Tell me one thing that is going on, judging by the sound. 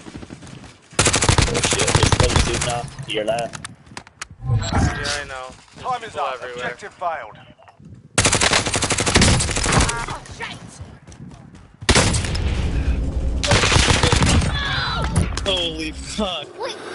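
Automatic gunfire rattles in rapid bursts.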